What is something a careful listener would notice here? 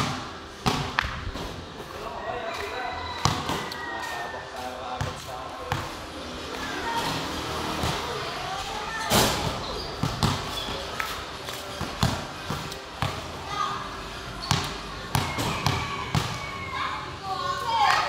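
A basketball bounces sharply on a hard court.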